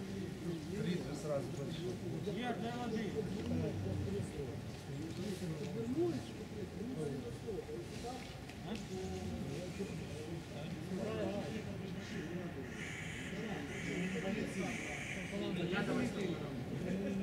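Several men talk to one another outdoors.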